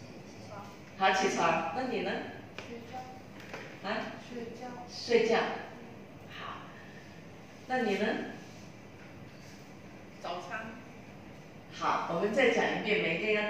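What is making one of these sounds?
A middle-aged woman speaks calmly into a microphone in a room.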